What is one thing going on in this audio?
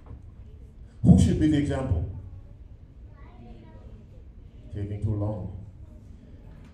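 A man speaks loudly and with animation through a microphone in a large echoing hall.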